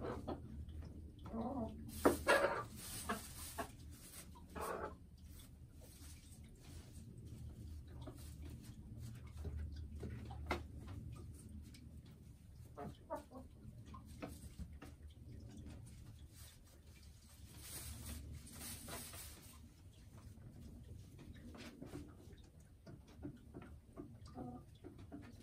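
A hen clucks and croons softly close by.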